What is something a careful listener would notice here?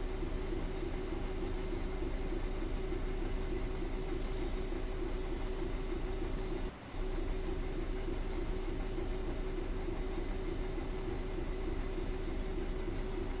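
Train wheels rumble over the rails.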